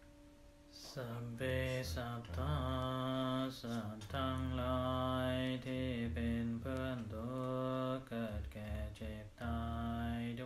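A man chants in a low, steady voice close to a microphone.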